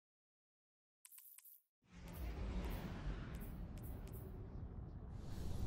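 Interface clicks sound in quick succession.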